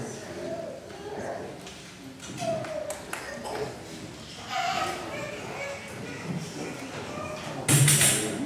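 A horn plays a melody over the guitars.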